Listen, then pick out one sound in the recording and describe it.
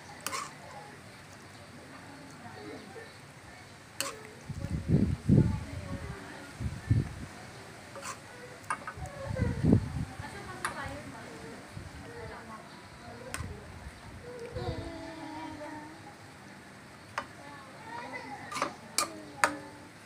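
A metal spoon scrapes the bottom of a pan.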